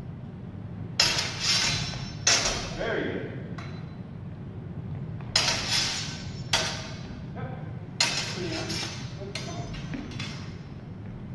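Swords clash and clatter sharply in an echoing hall.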